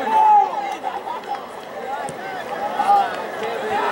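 A goalkeeper kicks a ball with a dull thud.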